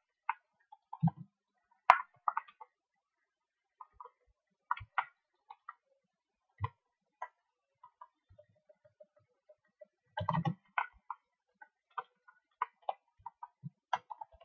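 Short game clicks and chimes sound now and then.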